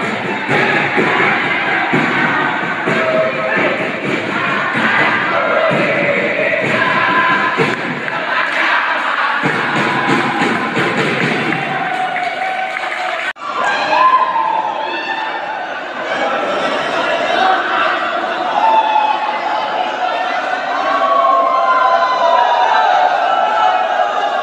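A crowd of young men cheers and shouts loudly in an echoing hall.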